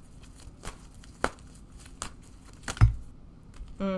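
Playing cards shuffle and tap together.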